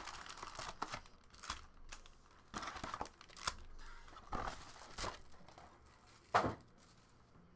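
Cardboard packs rustle and tap as they are handled.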